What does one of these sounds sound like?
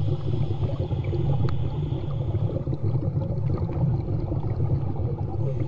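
A woman breathes heavily through a snorkel, very close by.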